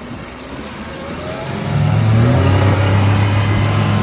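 Water churns and splashes behind a speeding boat.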